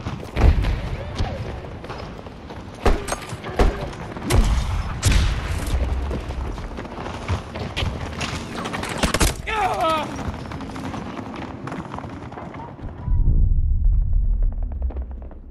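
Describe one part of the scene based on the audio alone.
Explosions boom and rumble close by.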